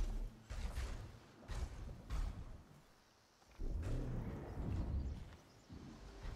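Footsteps crunch on dirt and grass.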